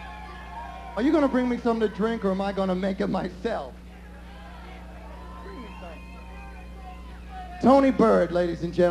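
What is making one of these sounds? A man sings loudly into a microphone over loudspeakers.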